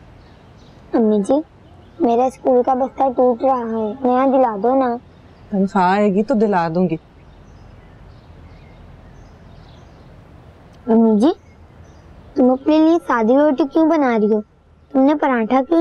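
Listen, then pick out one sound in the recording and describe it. A young girl speaks with feeling nearby.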